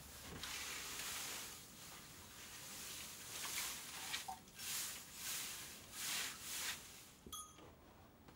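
A pitchfork tosses dry hay into a wooden manger with soft rustling swishes.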